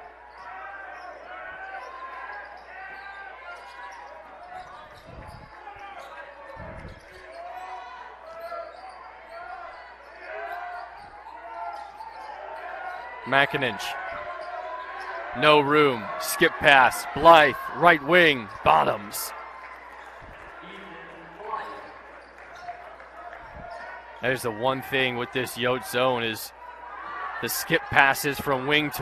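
A large crowd murmurs in an echoing indoor arena.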